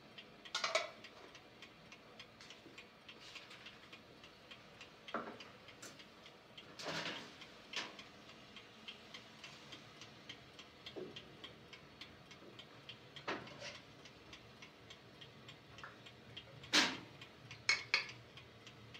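Metal pots and kettles clink and clatter.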